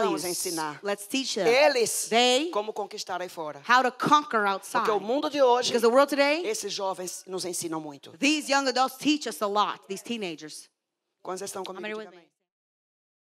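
A second woman speaks through a microphone in reply.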